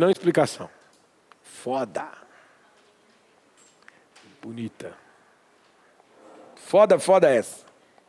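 A man speaks in short bursts with pauses, in a room with some echo.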